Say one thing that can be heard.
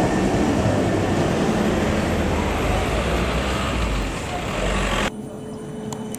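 A tram rumbles loudly past close by.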